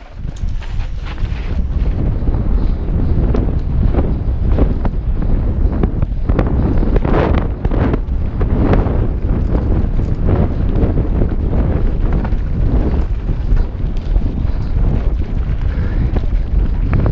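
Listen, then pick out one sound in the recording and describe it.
Wind rushes loudly past a fast-moving bike rider.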